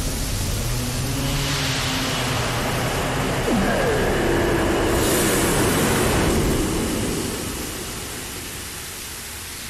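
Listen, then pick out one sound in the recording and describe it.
A deep rumbling blast swells and slowly fades.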